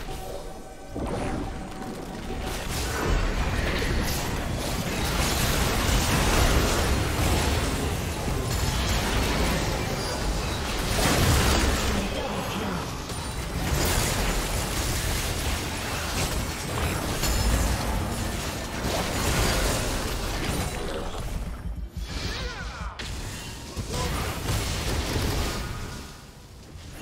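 Magic spells crackle and burst in a busy fight.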